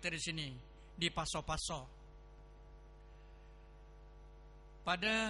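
An elderly man speaks calmly into a microphone, heard through a loudspeaker.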